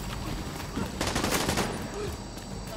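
A fire roars and crackles after an explosion.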